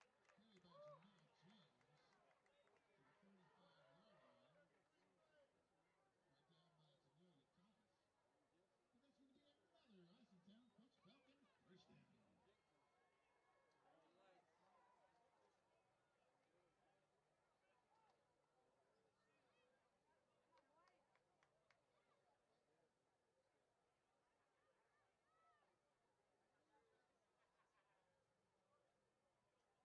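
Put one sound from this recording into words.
A crowd murmurs and cheers in an open-air stadium.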